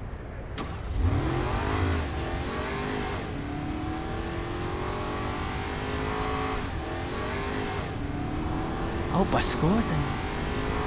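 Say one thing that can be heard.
A sports car engine revs and accelerates.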